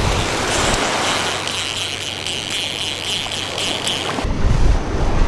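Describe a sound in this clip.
A fishing reel whirs as line runs out.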